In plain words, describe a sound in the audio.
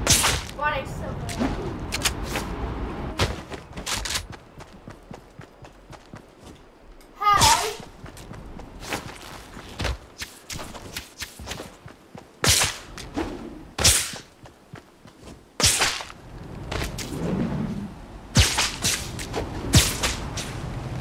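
Sudden whooshes sweep past.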